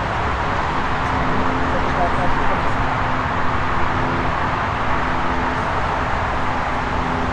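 A distant Boeing 747-8 freighter roars on its final approach to land.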